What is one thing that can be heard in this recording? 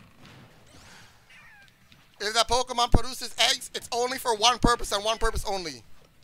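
Energy blasts whoosh and crackle in a fighting game.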